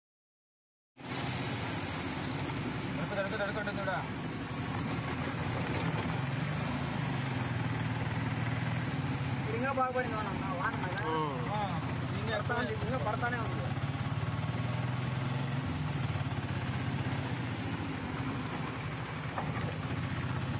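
An engine hums steadily as a vehicle drives along.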